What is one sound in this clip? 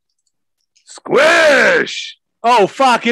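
A man exclaims loudly over an online call.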